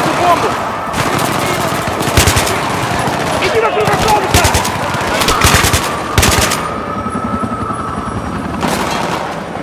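A rifle fires in rapid bursts close by.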